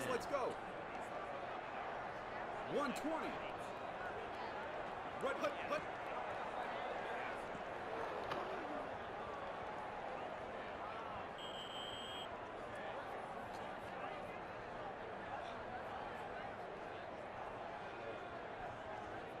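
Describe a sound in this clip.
A stadium crowd roars and cheers steadily.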